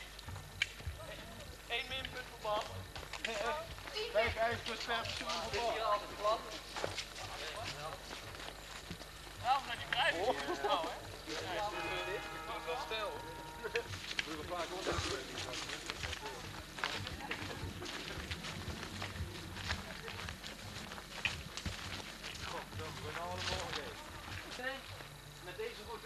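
Footsteps crunch on a leaf-strewn path.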